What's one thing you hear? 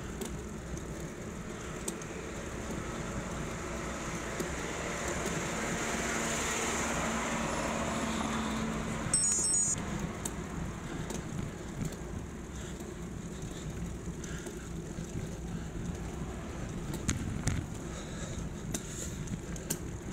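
Bicycle tyres hum steadily on a paved road.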